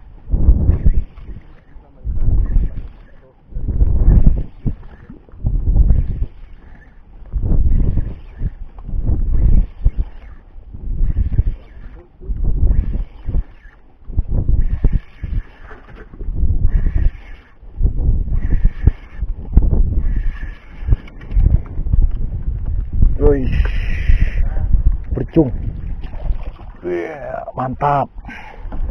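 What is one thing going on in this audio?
Wind rumbles across the microphone outdoors on open water.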